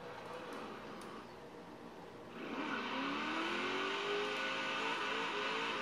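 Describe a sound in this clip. Tyres screech as a car drifts.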